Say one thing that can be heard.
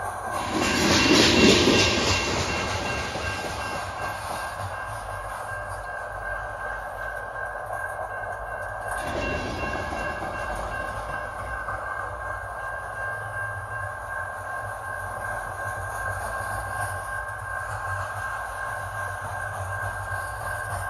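A railroad crossing bell rings steadily.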